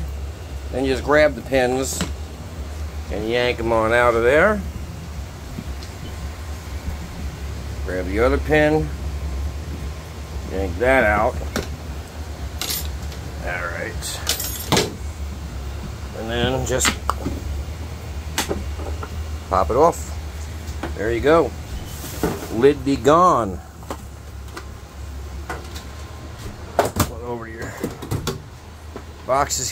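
Plastic latches and lids click and clatter as a plastic case is handled.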